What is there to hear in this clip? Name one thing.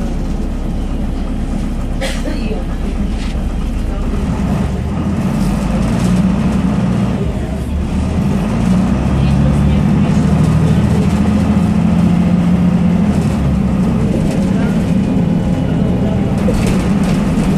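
The bus interior rattles and creaks while driving.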